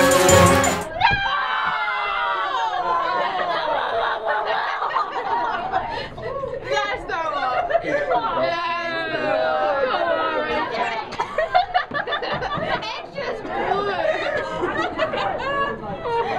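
A young woman laughs up close.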